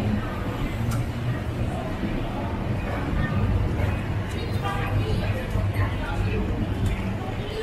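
An escalator hums and rattles as it runs.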